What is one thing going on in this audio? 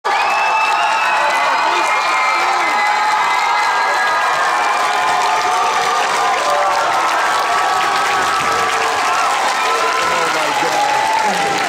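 A large crowd of children cheers and screams loudly in an echoing hall.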